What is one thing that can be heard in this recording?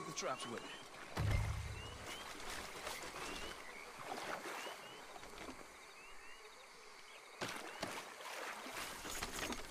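A man wades through shallow water, splashing and sloshing.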